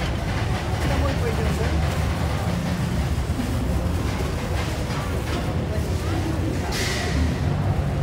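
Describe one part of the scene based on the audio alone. Batter sizzles on a hot griddle.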